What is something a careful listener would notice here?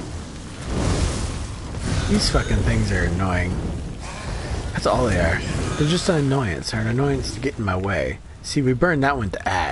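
Magic fire crackles and bursts.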